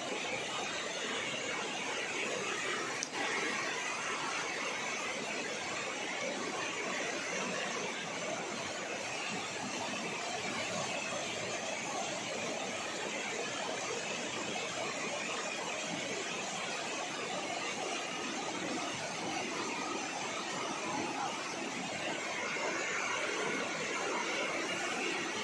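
Water rushes steadily in a nearby river.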